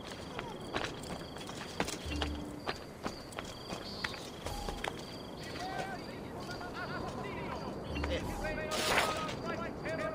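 Quick footsteps tap across a tiled roof.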